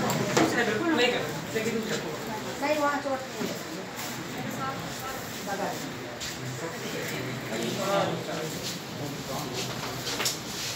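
Men and women talk over each other nearby in a busy room.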